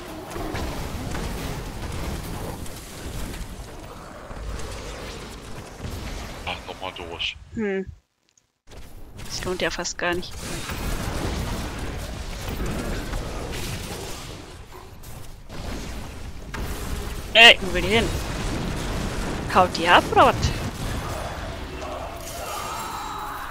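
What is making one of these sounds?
Magic blasts and explosions crackle and rumble throughout.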